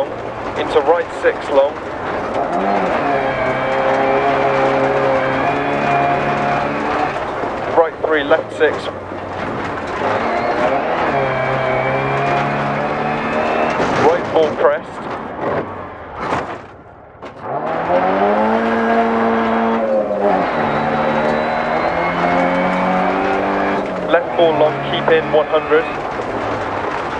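A car engine roars and revs up and down as it speeds along.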